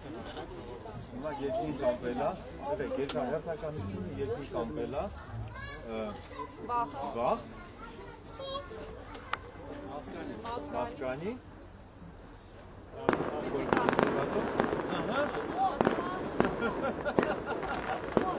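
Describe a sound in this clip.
A string ensemble plays a lively tune outdoors.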